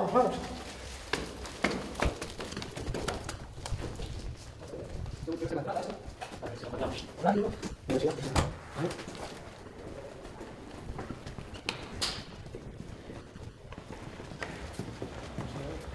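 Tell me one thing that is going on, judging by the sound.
Footsteps walk on a hard floor indoors.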